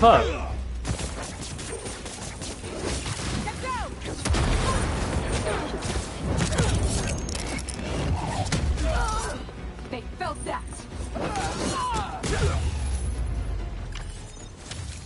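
Punches and kicks thud in a fast brawl.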